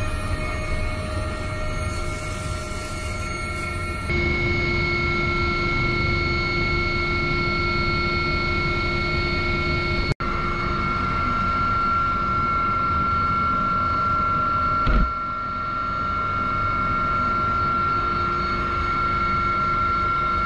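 A helicopter engine and rotor roar steadily from inside the cabin.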